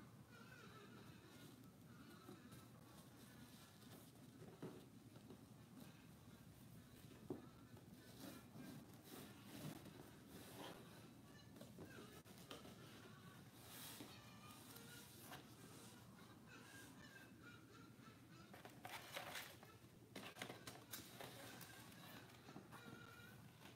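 Puzzle pieces rustle and scrape on a board as they are moved.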